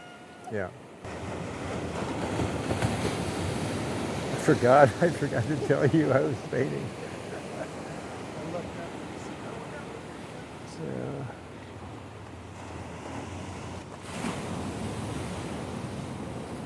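Waves crash and wash against rocks nearby.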